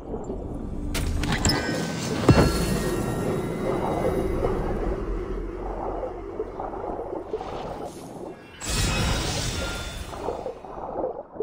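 Water splashes and swishes as someone swims.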